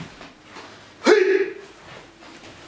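A man gives a short, sharp shout nearby.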